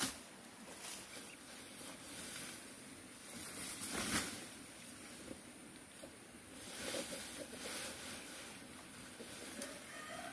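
Grass and leaves rustle as they are pulled and gathered.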